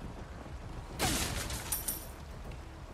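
A wooden crate splinters and breaks apart.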